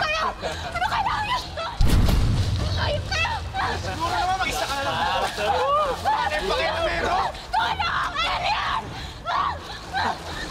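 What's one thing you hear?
Several young men shout and laugh excitedly.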